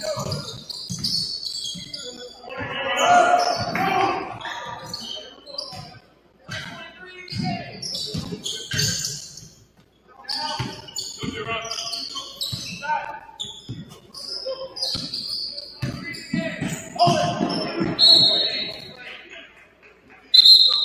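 Players shout to each other across a large echoing gym.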